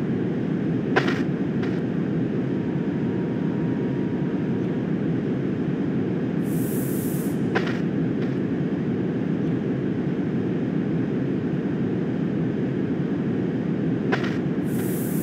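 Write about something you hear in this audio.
Train wheels clack over rail joints now and then.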